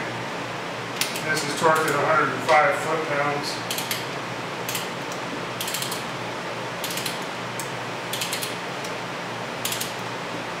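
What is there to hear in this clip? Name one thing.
A mechanic's wrench clicks and ratchets against metal.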